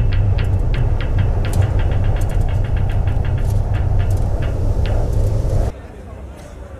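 Strong wind blows outdoors.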